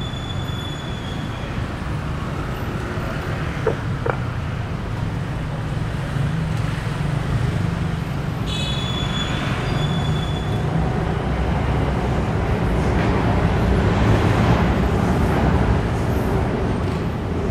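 City traffic rumbles steadily nearby outdoors.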